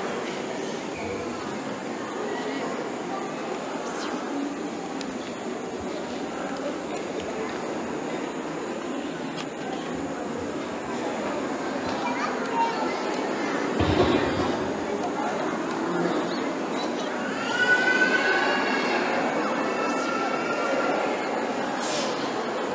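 A crowd of adults and children murmurs and chatters in a large room.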